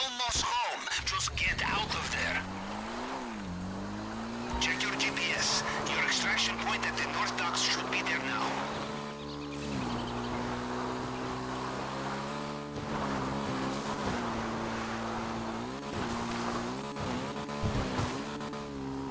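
A motorbike engine hums and revs up and down as the bike rides along.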